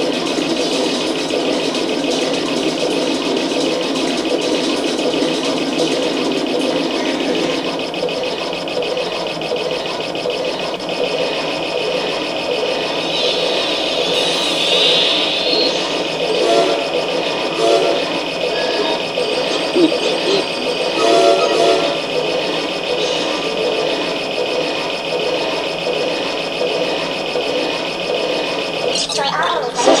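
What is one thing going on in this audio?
Electronic game music plays steadily through a television speaker.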